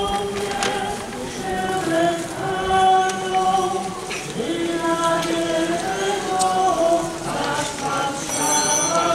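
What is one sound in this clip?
A crowd sings a slow hymn together outdoors.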